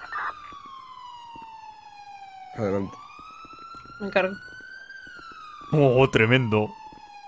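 A police siren wails steadily, slowly sliding in pitch.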